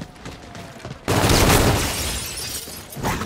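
Gunfire blasts in loud, rapid bursts.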